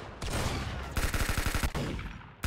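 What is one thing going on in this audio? An automatic rifle in a video game fires in rapid bursts.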